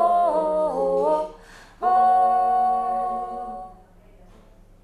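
A woman sings long held notes up close.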